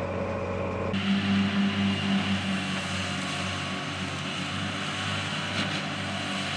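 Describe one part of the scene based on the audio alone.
A tractor engine hums steadily while mowing.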